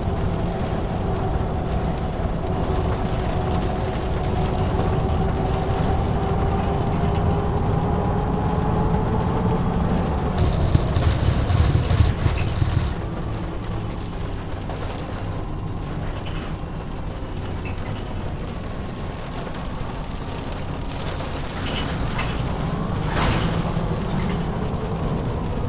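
A bus engine hums and whines steadily as the bus drives along.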